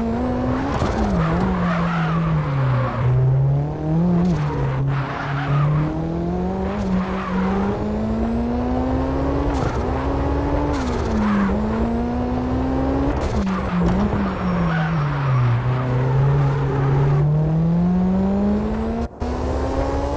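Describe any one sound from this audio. A car engine revs hard, rising and falling as the gears shift.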